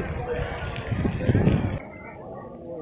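A fountain splashes and sprays water.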